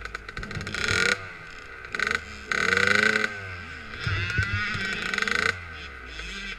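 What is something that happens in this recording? A dirt bike engine revs in loud bursts.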